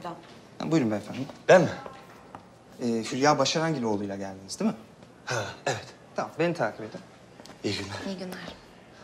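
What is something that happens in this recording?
A second man answers in a raised, agitated voice.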